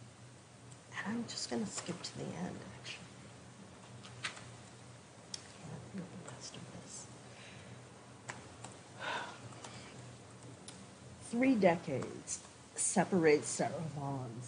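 A woman reads out into a microphone.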